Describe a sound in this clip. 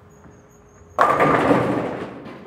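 Bowling pins crash and clatter as the ball strikes them.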